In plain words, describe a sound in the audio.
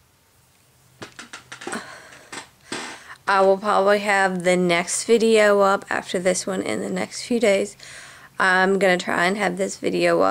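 A woman talks close to a microphone.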